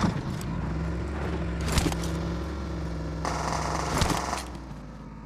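A vehicle engine hums steadily nearby.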